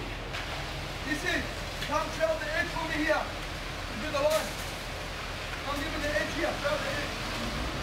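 A man shouts outdoors.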